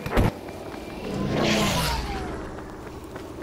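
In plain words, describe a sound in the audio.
A loud explosion booms and rumbles nearby.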